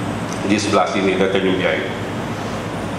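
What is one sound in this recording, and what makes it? An elderly man speaks slowly into a microphone over a loudspeaker.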